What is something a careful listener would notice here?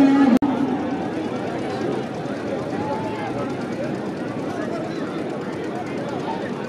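A large outdoor crowd of men chatters and shouts in the distance.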